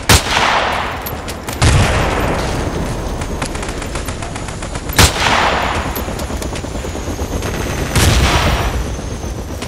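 A sniper rifle fires loud, sharp shots that echo away.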